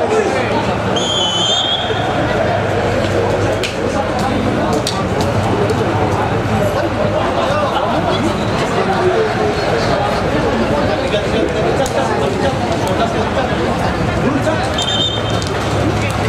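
A referee's whistle blows sharply twice.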